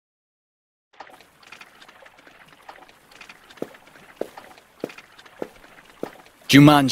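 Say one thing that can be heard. Footsteps tap softly on wood and sand.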